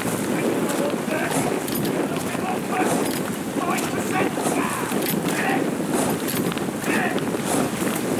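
A coxswain calls out to a rowing crew from the boat.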